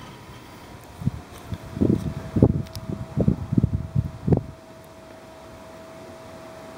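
A pickup truck engine idles steadily.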